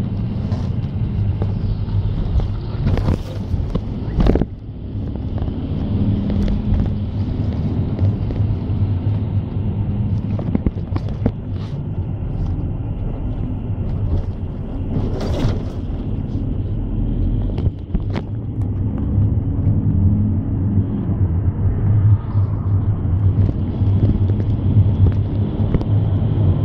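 A vehicle's engine hums steadily from inside while driving.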